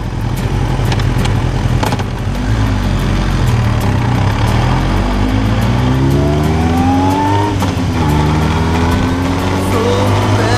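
A motorcycle engine revs up and climbs through the gears.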